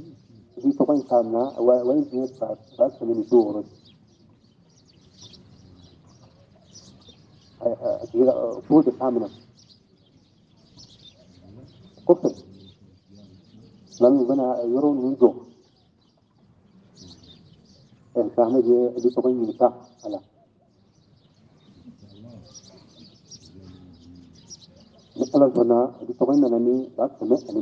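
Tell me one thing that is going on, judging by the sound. An elderly man chants in short, melodic phrases with pauses between them.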